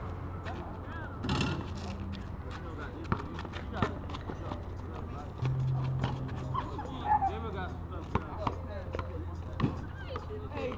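Sneakers scuff and squeak on pavement.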